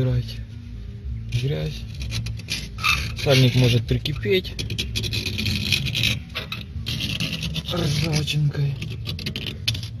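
A metal wire scrapes and clicks against a brake caliper.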